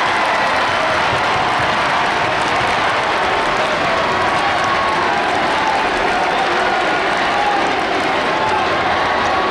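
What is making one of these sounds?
A basketball thumps as it is dribbled.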